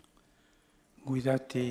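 An elderly man chants calmly into a microphone in a large echoing hall.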